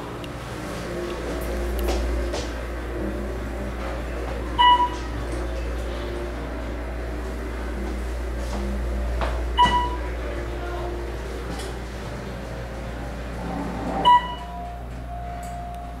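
An elevator car hums low as it travels.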